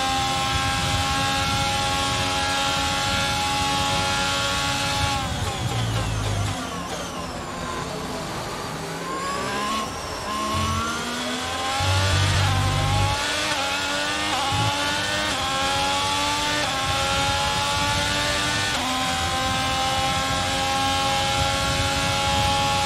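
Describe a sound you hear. A racing car engine screams at high revs.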